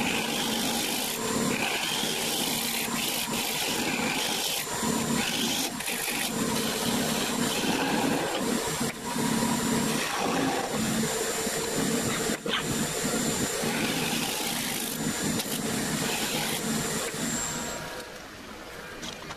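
A wood lathe motor hums steadily.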